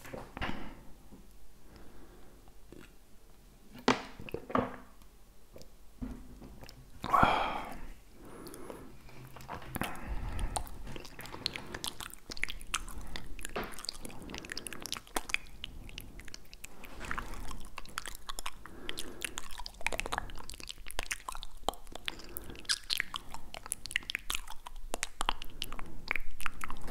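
A man whispers very close to a microphone.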